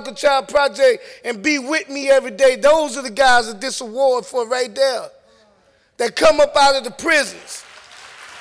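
A man speaks with animation through a loudspeaker in a large hall.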